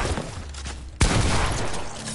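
A gun fires a shot in a video game.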